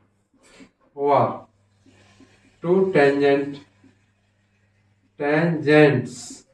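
A middle-aged man speaks calmly and clearly, as if teaching.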